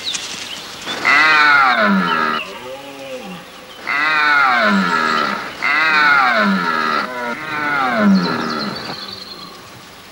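A stag bellows loudly in long, deep, rising and falling roars.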